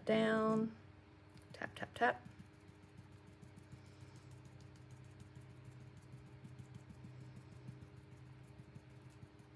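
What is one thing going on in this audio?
A colored pencil scratches softly on paper.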